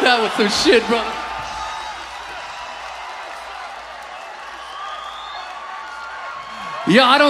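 A crowd cheers and roars.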